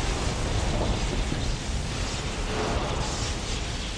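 Electricity crackles and sparks.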